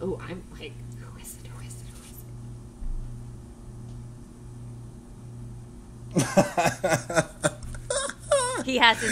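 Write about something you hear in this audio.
A young woman laughs loudly into a microphone.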